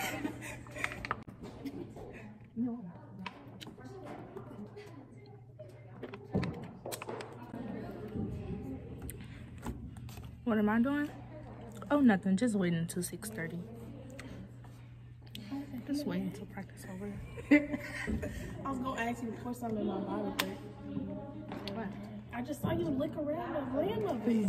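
A young woman gulps a drink.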